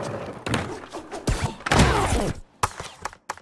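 Skateboard wheels roll and clatter on a ramp.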